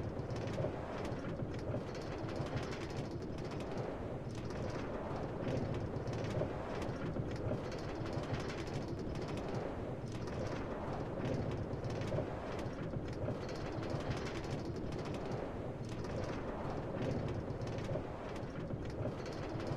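A minecart rattles steadily along rails.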